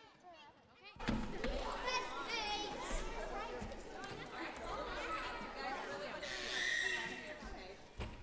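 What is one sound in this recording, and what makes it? Children chatter and call out together.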